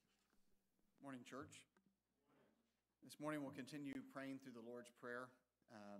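A man speaks calmly into a microphone over loudspeakers in a large room.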